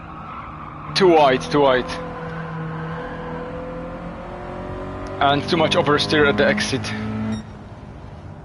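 Tyres squeal sharply through corners.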